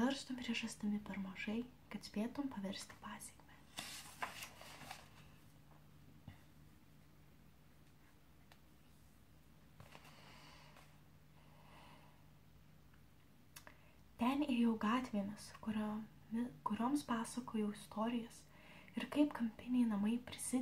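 A young woman reads aloud softly, close to a microphone.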